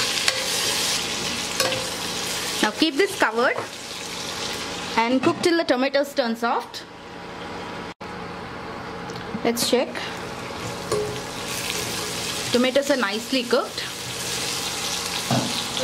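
A spoon scrapes and stirs inside a metal pot.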